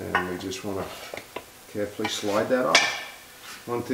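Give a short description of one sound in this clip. Metal parts clink.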